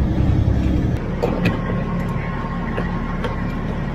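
A fuel pump hums as fuel flows through a nozzle.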